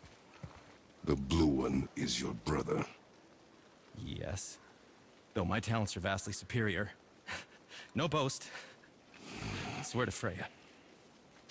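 A man speaks with animation, in a deep voice.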